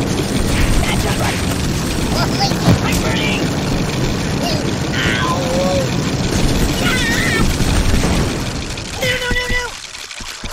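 A rocket roars and blasts with fiery bursts.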